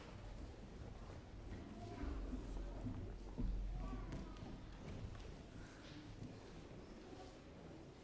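Children chatter softly in a large echoing hall.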